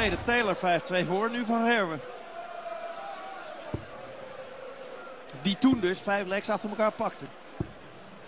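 A crowd of spectators sings and cheers loudly in a large hall.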